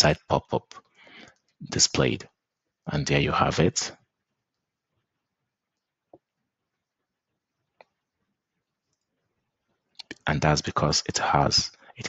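A young man talks calmly and clearly into a close microphone.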